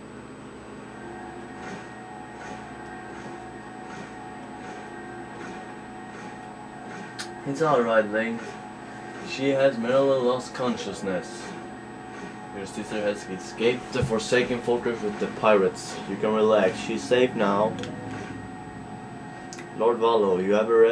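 Soft music plays through a television speaker.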